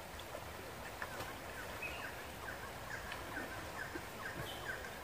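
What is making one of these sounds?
A shallow river flows and babbles steadily over rocks outdoors.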